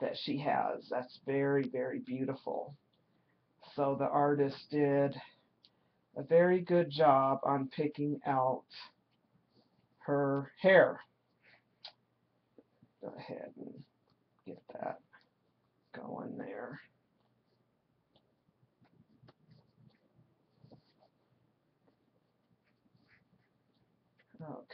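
Soft fabric rustles as hands handle clothing.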